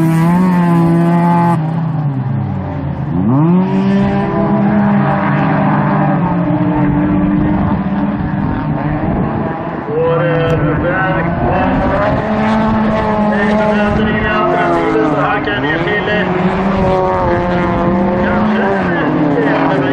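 Racing car engines roar and rev hard, rising and falling in pitch.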